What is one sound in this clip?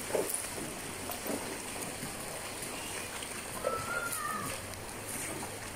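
Hooves splash through shallow water.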